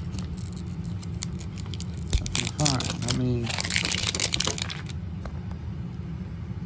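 Thin plastic film crinkles and crackles as hands peel it off a ball.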